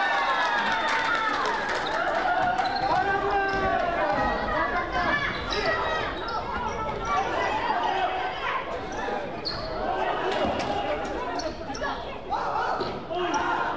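Children shout and call out excitedly in a large echoing hall.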